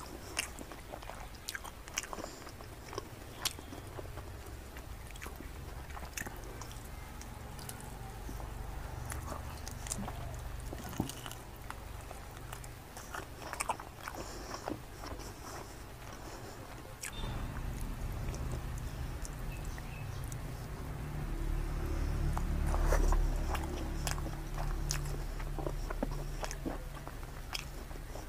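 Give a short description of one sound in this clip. Fingers squish and pull apart soft food with sticky, wet sounds.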